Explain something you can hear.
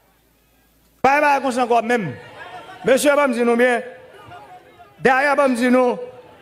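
A large crowd chants together loudly outdoors.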